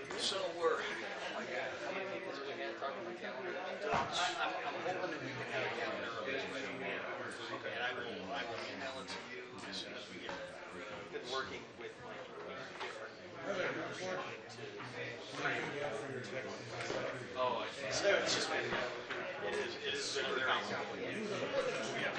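Several men and women chat at once at a distance, in a room with a slight echo.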